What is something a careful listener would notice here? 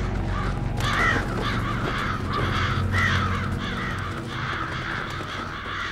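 Crows' wings flap as the birds take off.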